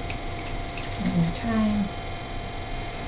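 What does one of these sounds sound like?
Water splashes briefly in a bucket.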